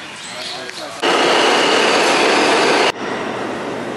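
A subway train rushes past loudly.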